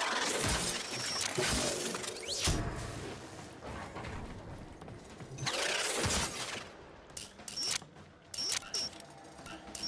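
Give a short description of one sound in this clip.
Short electronic tones chime as a lock panel is worked.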